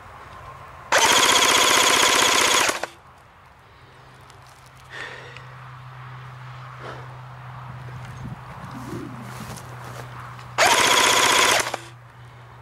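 An electric airsoft rifle fires buzzing full-auto bursts.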